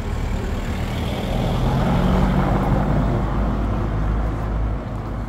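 A car drives past on a street nearby.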